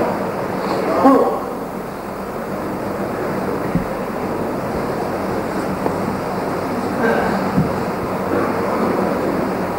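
A middle-aged man speaks into a microphone, heard through a loudspeaker in an echoing room.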